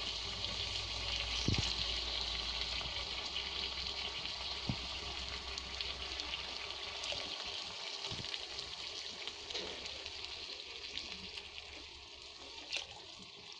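Water splashes as it is poured into a pan.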